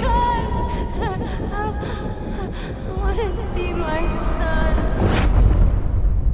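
A young woman cries out in distress, close by.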